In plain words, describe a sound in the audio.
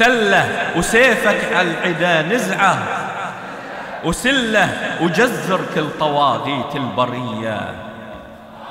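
A man speaks with feeling into a microphone, heard through loudspeakers in an echoing hall.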